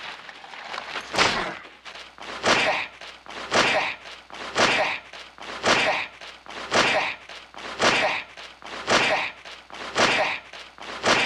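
A man strikes the ground with steady, rhythmic blows.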